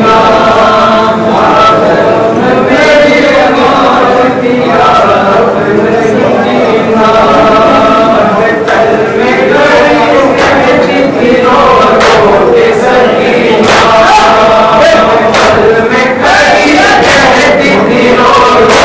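A group of men chant along in unison.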